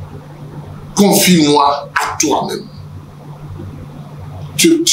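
A man speaks loudly and with animation into a microphone.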